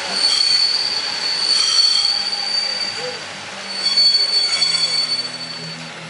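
A train hums with a steady high whine as it pulls slowly away.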